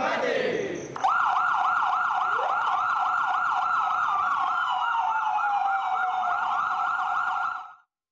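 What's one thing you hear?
A fire truck siren wails rapidly, up close.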